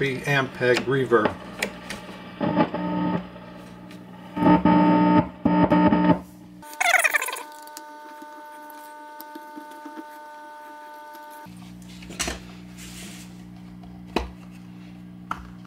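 An amplifier hums steadily.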